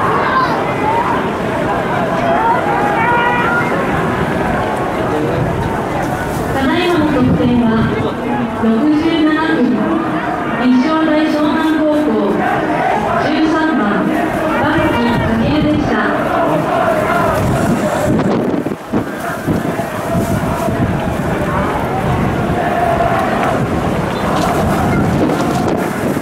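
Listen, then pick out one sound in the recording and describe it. A large crowd chants and cheers outdoors in a stadium.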